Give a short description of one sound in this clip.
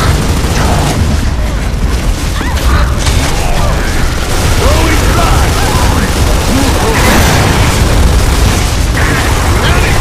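Automatic rifle fire rattles in rapid bursts.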